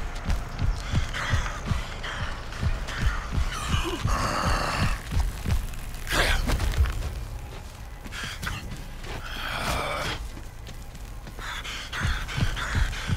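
Footsteps thud quickly on dirt as a man runs.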